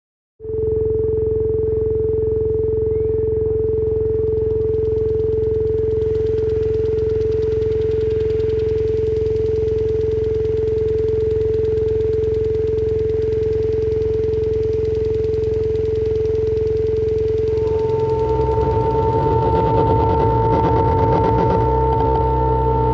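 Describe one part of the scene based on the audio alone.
Electronic music drones steadily from loudspeakers outdoors.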